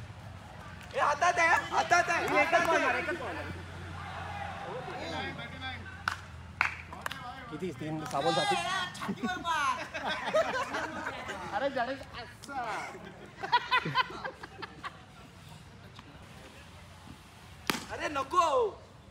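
Young men shout and cheer outdoors.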